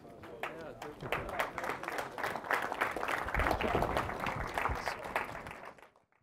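An audience applauds loudly with many claps.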